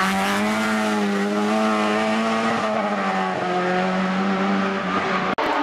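A car engine drones steadily as the car drives away around a bend.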